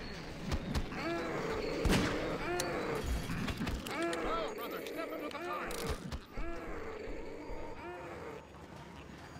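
A creature moans and groans nearby.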